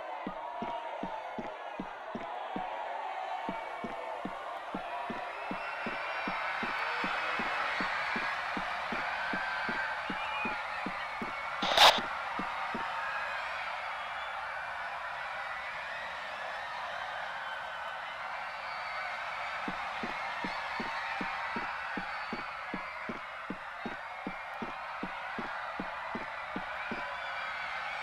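Footsteps tap quickly and evenly.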